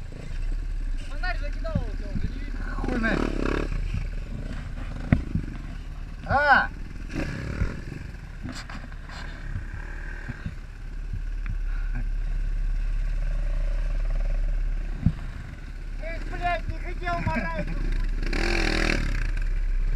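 A second motorcycle engine revs nearby.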